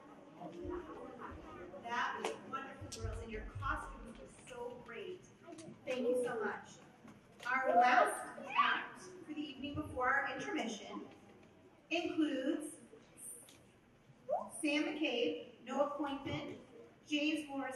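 A woman speaks through a microphone, reading out calmly in a large hall.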